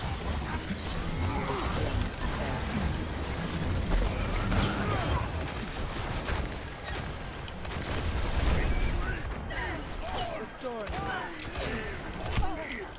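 Gunfire and game effects crackle and boom.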